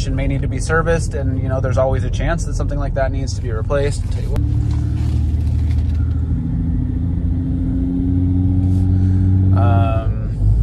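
A car engine hums steadily from inside the car as it drives in traffic.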